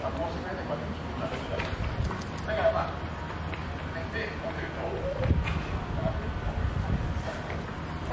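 Lion cubs scrabble against a wire fence with their paws.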